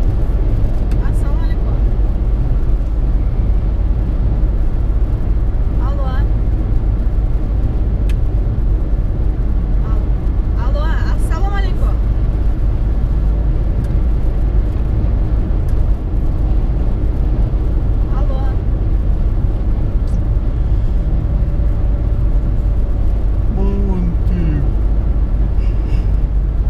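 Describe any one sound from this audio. A car engine hums steadily with loud road and wind rumble from inside a moving car.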